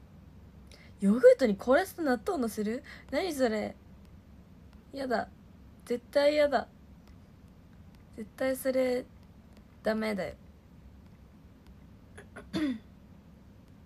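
A young woman talks calmly and cheerfully close to a microphone, with pauses.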